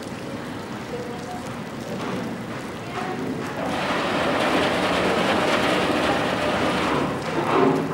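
Water churns and swirls against a hull.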